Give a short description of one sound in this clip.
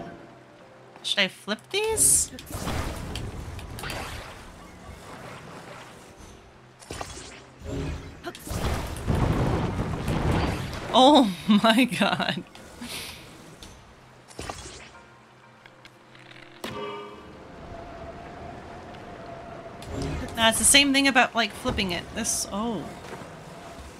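A young woman speaks into a close microphone with animation.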